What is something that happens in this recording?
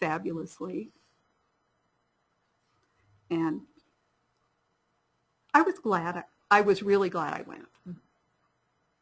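A young woman speaks calmly into a microphone, in short phrases with pauses.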